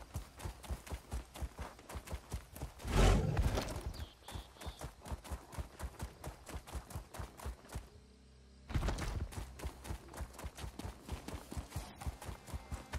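A horse's hooves gallop rhythmically over dirt.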